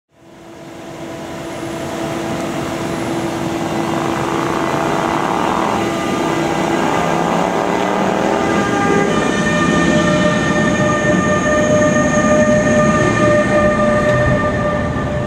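An electric train rolls past close by, its motors humming and whining.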